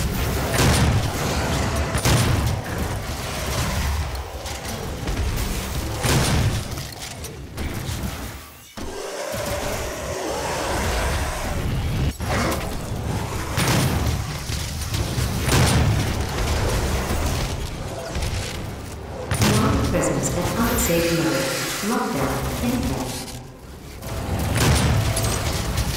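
Monsters growl and roar.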